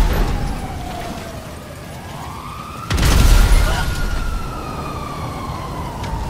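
Fire roars and crackles.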